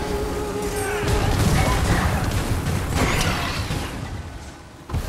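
Lightning cracks with a loud rumbling crash.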